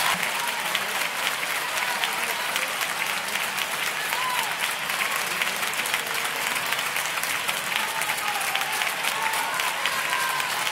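A large audience claps in a big echoing hall.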